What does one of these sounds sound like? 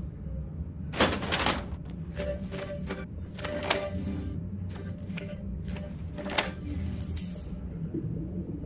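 Soft electronic whooshes and chimes sound as a holographic panel opens and is used.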